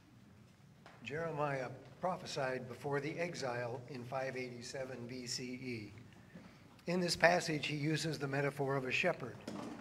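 An elderly man reads aloud calmly through a microphone.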